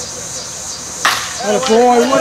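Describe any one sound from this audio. A baseball smacks sharply into a catcher's mitt outdoors.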